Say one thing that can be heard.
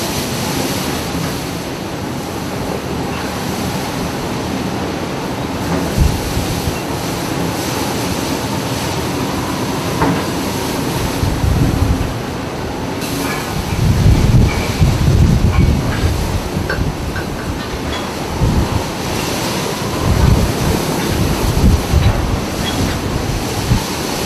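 Heavy seas crash and surge against a ship's bow.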